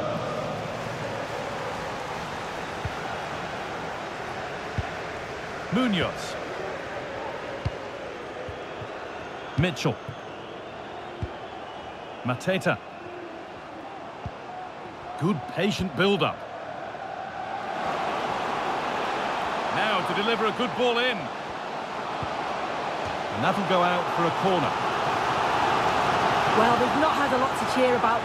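A large crowd roars steadily in a stadium, swelling louder toward the end.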